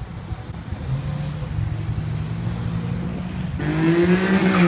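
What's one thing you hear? A Porsche 911 convertible drives past.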